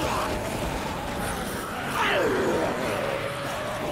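Zombies groan nearby.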